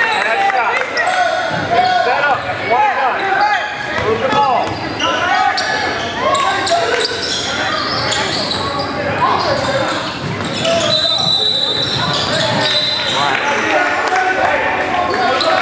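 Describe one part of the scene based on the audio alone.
A crowd of spectators chatters and cheers in an echoing hall.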